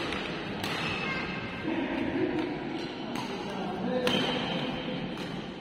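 Rackets smack a shuttlecock back and forth in an echoing hall.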